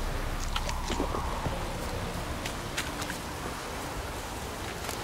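A man speaks in a low, sombre voice close by.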